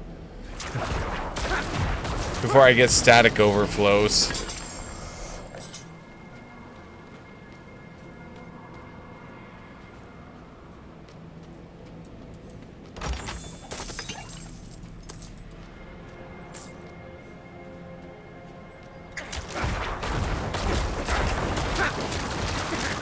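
Game weapons strike and clash against monsters.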